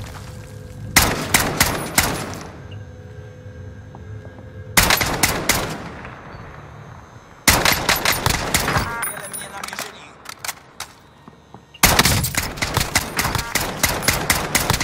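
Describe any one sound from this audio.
Loud rifle shots crack in short bursts.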